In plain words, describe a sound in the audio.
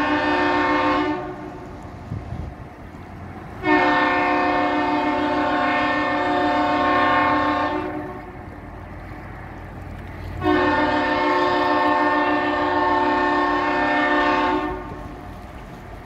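Water splashes against a hull nearby.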